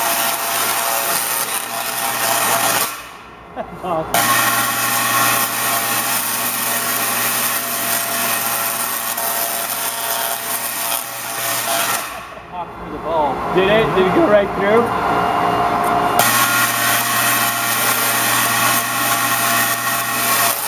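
Electric sparks crackle and buzz loudly, stopping and starting again.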